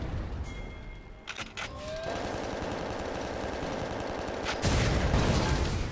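Magic blasts whoosh and crackle in a video game.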